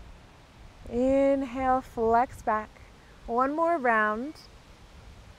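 A woman speaks calmly and clearly, as if giving instructions, close to a microphone.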